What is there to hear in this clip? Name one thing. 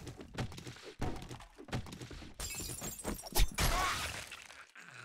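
A knife slashes and thuds into flesh.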